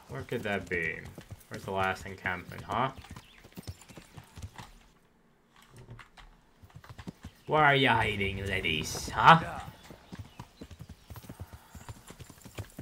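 Horse hooves thud on a forest path.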